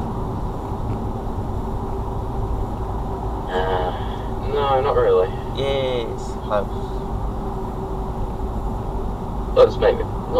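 A car's engine and tyres hum steadily on a motorway.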